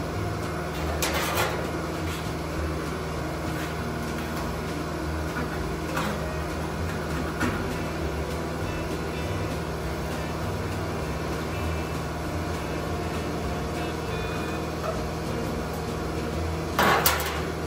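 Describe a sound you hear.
A metal tool taps and scrapes against sheet metal.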